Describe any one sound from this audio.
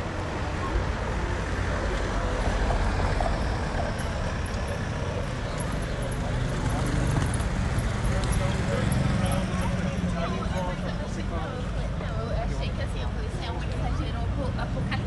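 Footsteps tap on the pavement.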